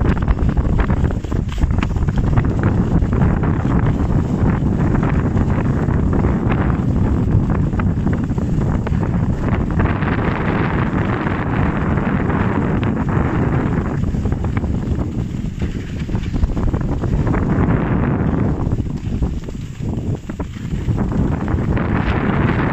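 Skis scrape and hiss over packed snow close by.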